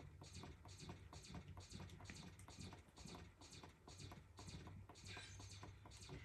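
Electronic game shots fire in a quick steady rhythm.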